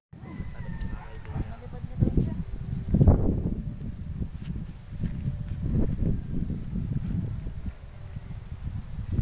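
A kite's fabric flaps and rustles in the wind.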